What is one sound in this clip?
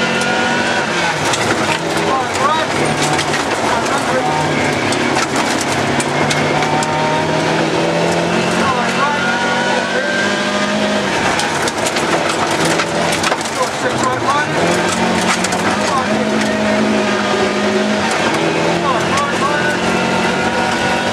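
A rally car engine roars and revs hard, rising and falling with the gear changes.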